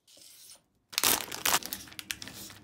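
Plastic wrap crinkles and rustles.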